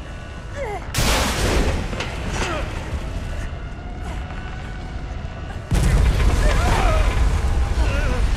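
A loud explosion roars.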